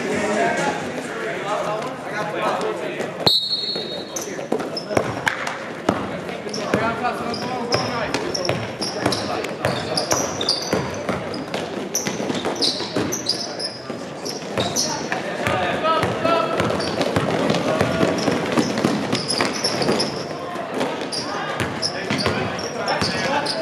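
A crowd of spectators chatters and calls out in the background.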